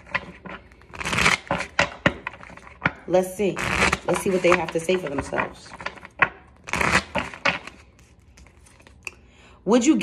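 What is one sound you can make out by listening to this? Playing cards riffle and shuffle.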